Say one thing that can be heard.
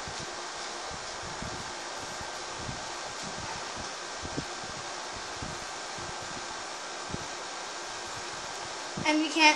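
A window air conditioner hums steadily.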